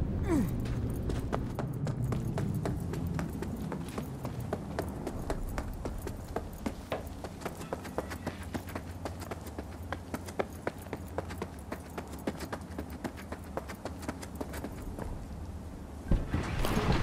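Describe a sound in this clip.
Footsteps splash on wet pavement at a quick pace.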